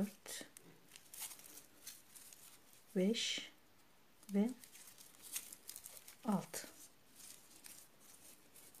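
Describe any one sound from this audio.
Dry raffia rustles and crinkles as hands crochet it.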